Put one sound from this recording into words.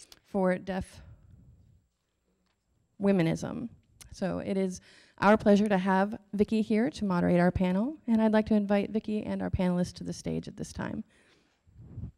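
A young woman speaks with animation into a microphone in a large hall.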